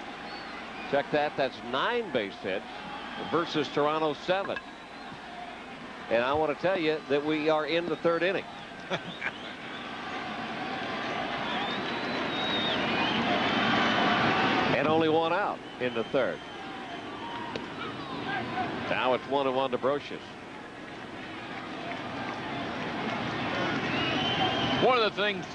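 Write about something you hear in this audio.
A large crowd murmurs and cheers, swelling louder at times.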